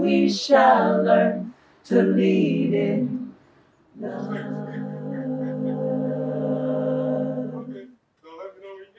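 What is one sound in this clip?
A group of men and women sing together outdoors in harmony, holding long notes.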